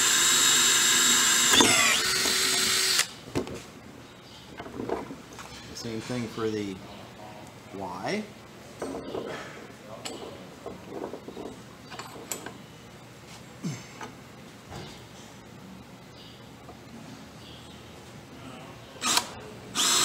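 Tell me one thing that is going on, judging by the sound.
A cordless drill whirs loudly in short bursts.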